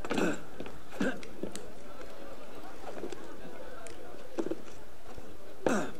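Hands scrape and grip rough stone while climbing.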